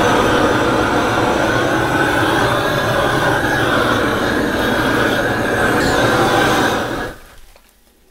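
A blowtorch roars loudly.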